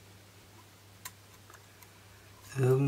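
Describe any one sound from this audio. Plastic parts click as they are fitted together by hand.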